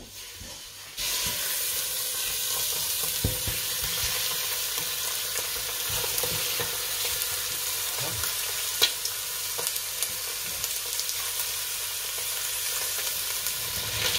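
Meat sizzles and hisses steadily in a pot.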